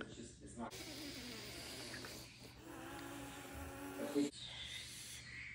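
A woman laughs excitedly close by.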